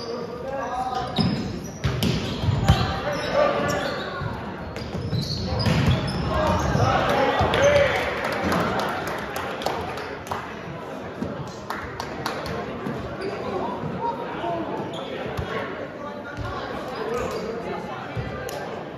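Young men call out and talk with animation across a large echoing gym.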